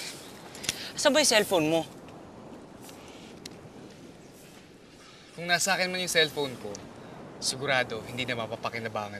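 Another young man answers calmly close by.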